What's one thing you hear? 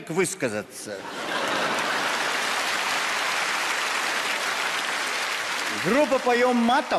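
A large audience applauds.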